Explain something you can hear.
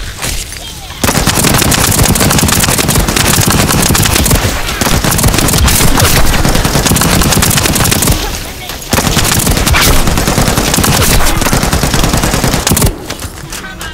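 Heavy guns fire in rapid, loud bursts.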